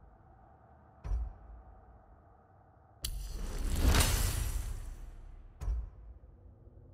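A game menu clicks as a selection changes.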